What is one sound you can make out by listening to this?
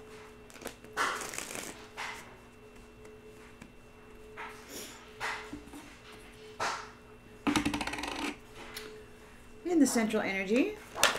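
A middle-aged woman speaks briefly and softly, close to the microphone.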